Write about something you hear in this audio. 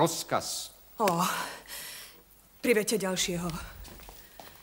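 A woman speaks with emotion.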